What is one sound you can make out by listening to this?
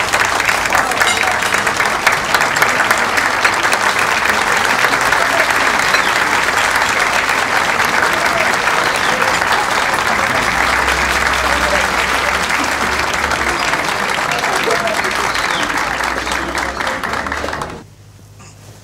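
A crowd claps and cheers loudly in a large echoing hall.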